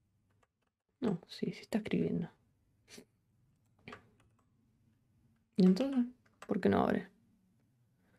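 A young woman speaks calmly into a close microphone, in short bursts.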